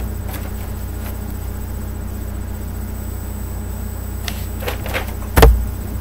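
Paper rustles as a sheet is handled.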